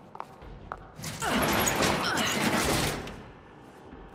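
A metal shutter rattles loudly as it is forced open.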